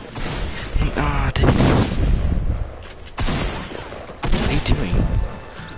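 Gunshots crack in rapid bursts.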